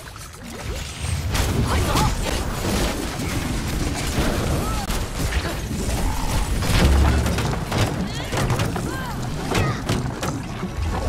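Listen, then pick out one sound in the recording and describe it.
Spell blasts and explosions boom and crackle in a game battle.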